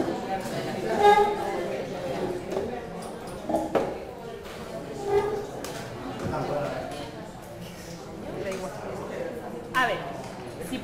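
People murmur and chat in the background.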